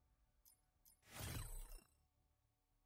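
A short menu selection sound whooshes and rings out.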